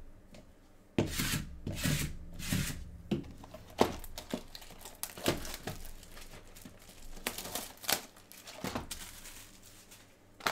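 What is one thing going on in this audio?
Plastic wrap crinkles and tears as it is pulled off a box.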